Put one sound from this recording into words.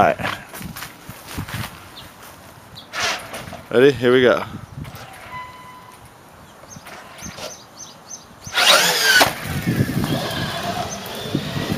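A toy car's electric motor whines as it drives and revs.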